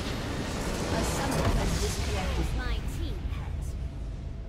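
A large structure shatters and collapses with a rumbling crash.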